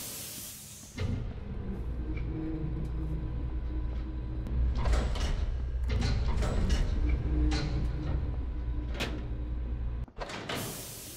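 A low machine hum drones loudly, then cuts off.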